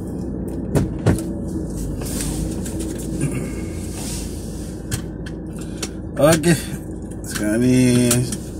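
A car engine idles with a low steady rumble, heard from inside the car.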